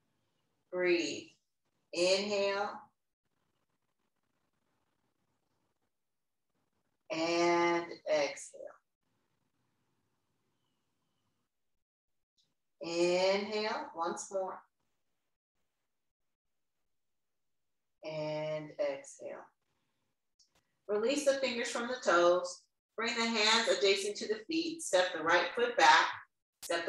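A woman speaks calmly, giving slow instructions, with pauses between phrases.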